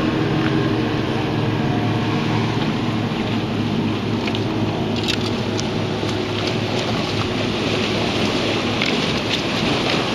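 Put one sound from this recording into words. Water rushes steadily over rocks nearby.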